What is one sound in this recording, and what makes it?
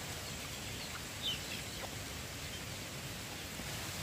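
A chicken clucks softly nearby.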